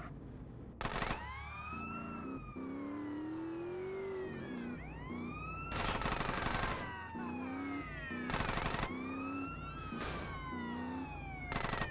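An ambulance siren wails in rising and falling sweeps.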